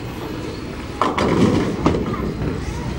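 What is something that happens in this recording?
Bowling pins crash and clatter in the distance.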